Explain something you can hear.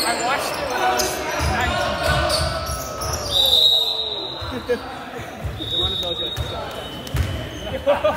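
Spectators chatter nearby.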